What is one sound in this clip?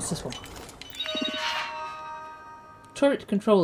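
A computer terminal chimes with a rising run of electronic beeps as it starts up.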